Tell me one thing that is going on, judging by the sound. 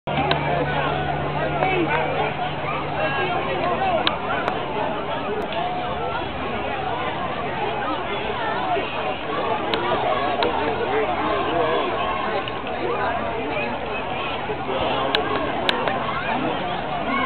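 A crowd of spectators chatters steadily outdoors.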